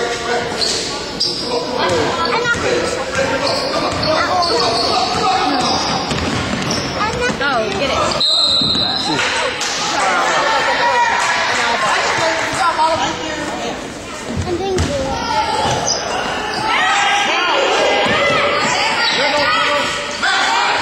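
Children shout and call out in a large echoing gym.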